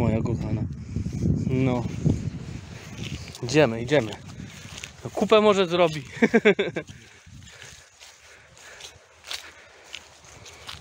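A dog's paws rustle through grass.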